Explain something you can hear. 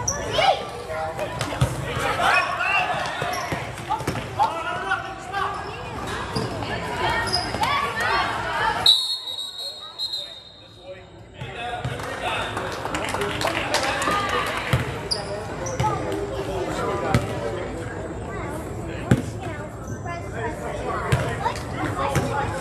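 A crowd of spectators talks and cheers, echoing in a large gym.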